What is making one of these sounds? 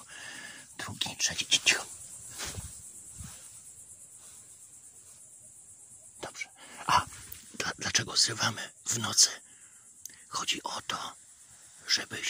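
A young man speaks close by in short bursts.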